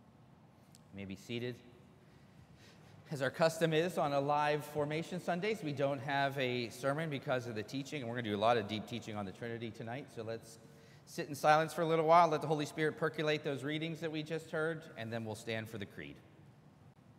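A man speaks in a steady, chanting voice in a large echoing hall.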